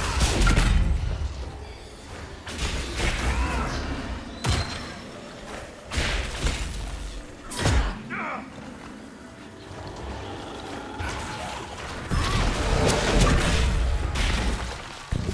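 Magic spells crackle and burst in a fight.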